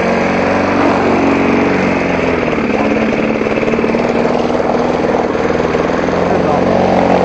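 A petrol lawn mower engine roars steadily up close.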